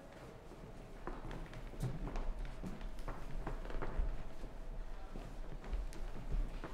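A group of men and women murmur quietly close by.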